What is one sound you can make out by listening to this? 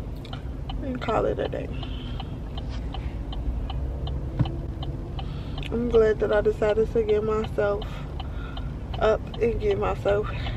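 A young woman speaks casually and close by, in short bursts.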